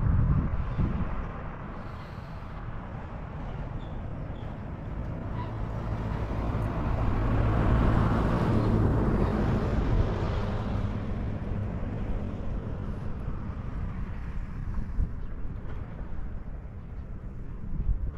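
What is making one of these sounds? Wind blows across an open hillside, gusting and rumbling.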